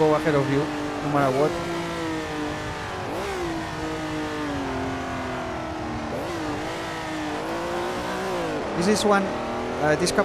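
A race car engine roars and revs up and down through gear changes.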